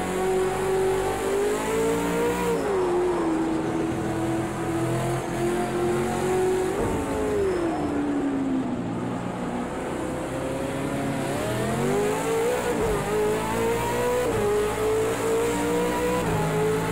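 A racing car engine roars, its pitch falling as the car slows and rising as it speeds up again.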